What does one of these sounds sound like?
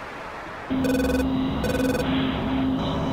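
An electronic warning tone beeps in the cockpit.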